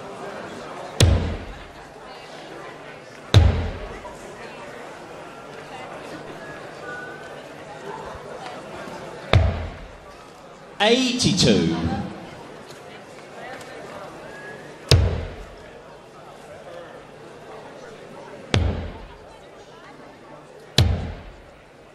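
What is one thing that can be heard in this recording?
Darts thud into a dartboard.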